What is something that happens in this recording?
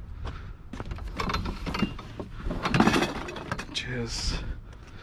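Gloved hands rattle and clatter through a pile of junk furniture.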